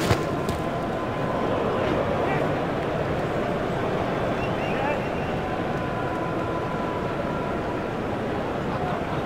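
A large stadium crowd cheers.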